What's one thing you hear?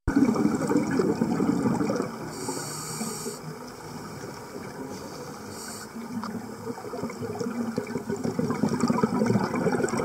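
Air bubbles from a diver's breath gurgle and rumble loudly underwater.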